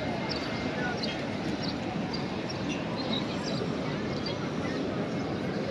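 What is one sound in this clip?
A large crowd of men and women murmurs and talks outdoors.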